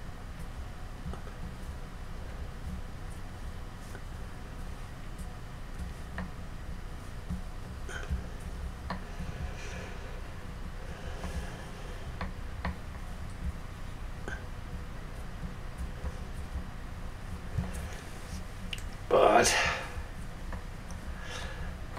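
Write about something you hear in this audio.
Hands rub and handle a light sculpted head, with soft scraping and tapping.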